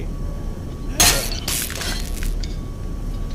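A shovel smashes against a metal keypad with a sharp clang.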